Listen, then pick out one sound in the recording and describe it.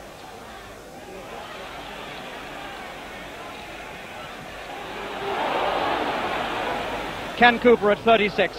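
A large crowd cheers and roars, swelling and then fading.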